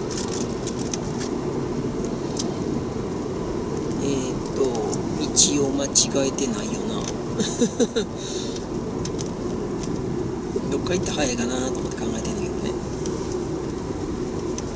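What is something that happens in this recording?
A car engine hums steadily with road rumble.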